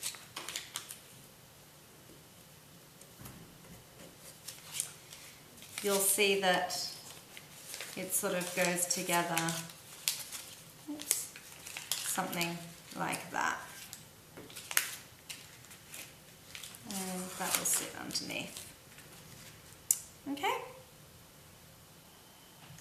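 Paper rustles and crinkles as it is handled and pressed flat.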